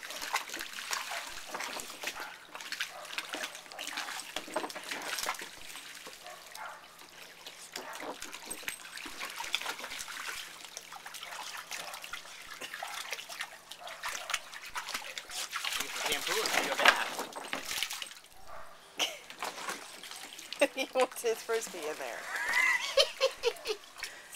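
A small dog splashes through water in a shallow pool.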